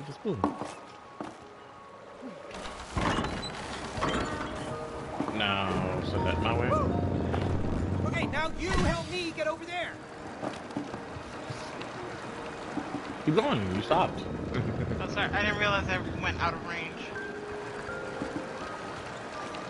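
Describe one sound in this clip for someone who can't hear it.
Footsteps crunch on snow and wooden planks.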